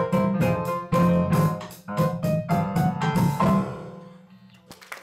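A piano plays a lively melody.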